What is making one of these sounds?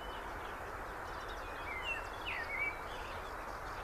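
Birds chirp outdoors.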